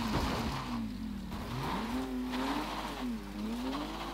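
A car crashes into barriers with a loud thud.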